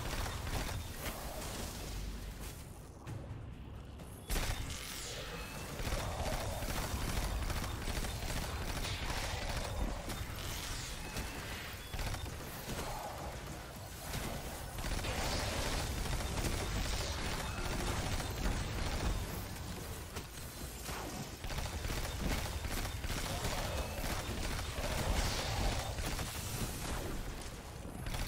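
Rapid gunfire bursts from a game weapon.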